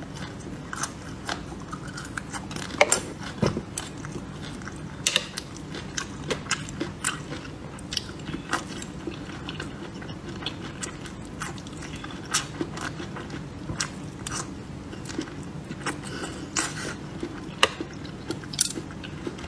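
A woman chews soft food close to a microphone, with wet smacking sounds.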